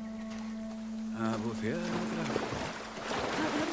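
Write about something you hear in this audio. Water splashes and sloshes as someone wades in.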